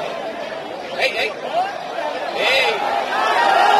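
Spectators nearby shout and whistle.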